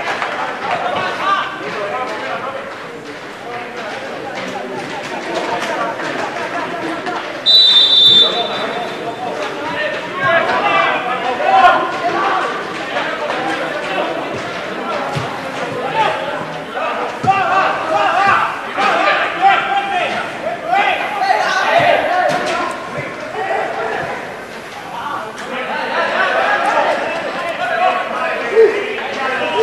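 A football is kicked with dull thumps outdoors.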